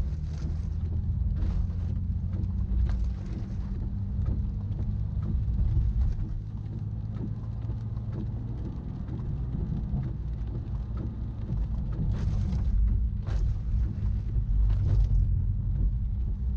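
Windscreen wipers swish across wet glass now and then.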